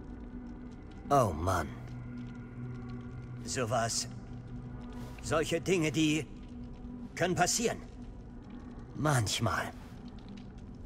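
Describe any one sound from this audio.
A man speaks slowly and hesitantly.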